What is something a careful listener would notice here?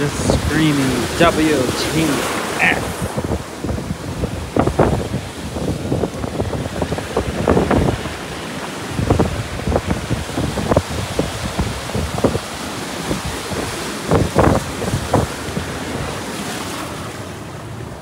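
Waves crash and surge against rocks nearby.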